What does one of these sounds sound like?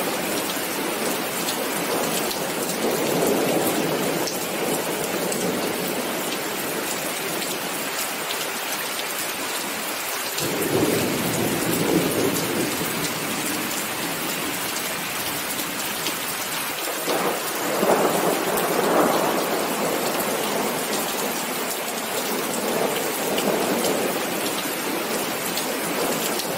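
Steady rain patters on pavement and benches outdoors.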